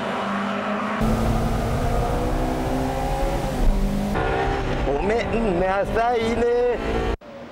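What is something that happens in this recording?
A car engine revs hard from inside the car, rising and falling with gear changes.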